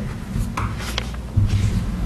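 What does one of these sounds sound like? Papers rustle on a table.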